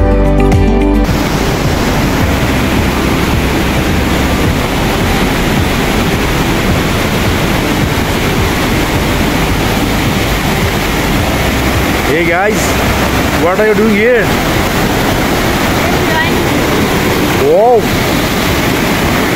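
A fast stream rushes and roars loudly over rocks.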